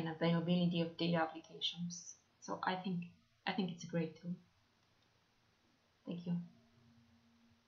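A young woman speaks calmly and close into a microphone.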